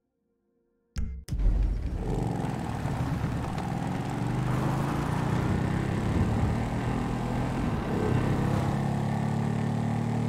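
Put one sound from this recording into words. A motorcycle engine revs and roars as the bike rides along a road.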